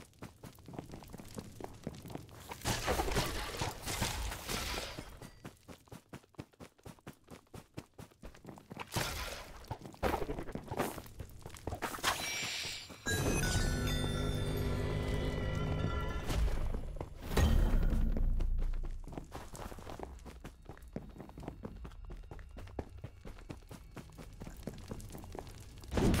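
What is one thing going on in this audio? Footsteps patter quickly as a game figure runs.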